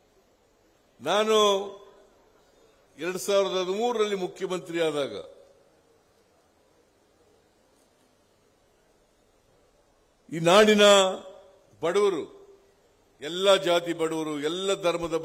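An elderly man speaks forcefully into a microphone over loudspeakers, with long pauses.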